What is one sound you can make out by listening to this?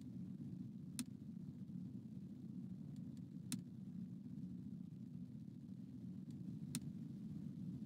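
Soft clicks sound now and then from a game menu.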